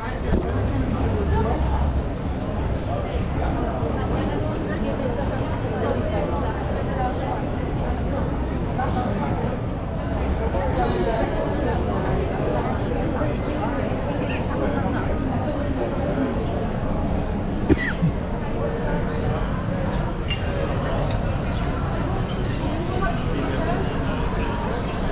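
Many people chatter in a busy street, heard outdoors.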